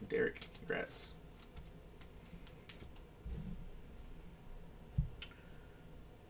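Plastic wrapping crinkles and rustles in someone's hands.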